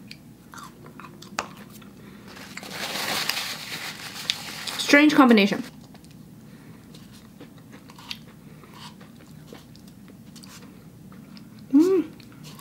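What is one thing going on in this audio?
A plastic spoon scrapes in a cup of ice cream.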